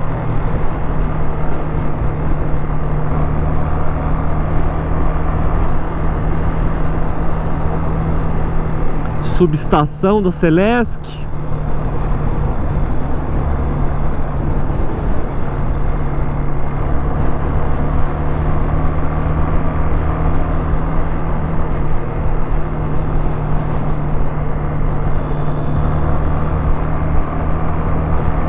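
Wind rushes past a moving motorcycle rider.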